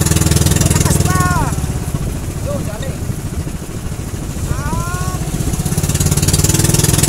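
A man speaks close by, loudly over an engine.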